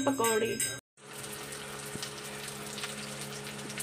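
Food sizzles softly in hot oil in a pan.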